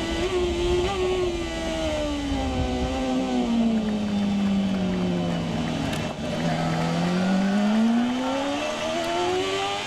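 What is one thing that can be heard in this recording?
A racing motorcycle engine roars up close, its pitch sinking and then climbing again as it revs.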